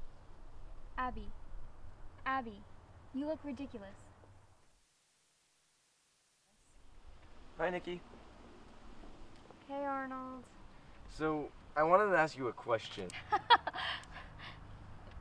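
Two young women talk calmly close by.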